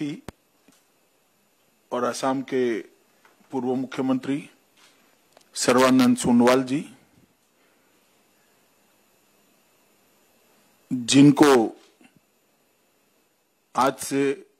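A middle-aged man speaks calmly and slowly into a microphone, with long pauses.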